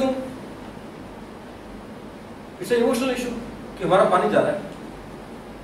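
A young man speaks calmly in a room with a slight echo, pausing between phrases.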